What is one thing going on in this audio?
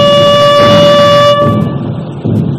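A bugle sounds a call.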